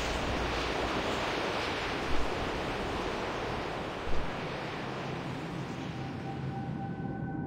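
Wind rushes steadily past a flying creature.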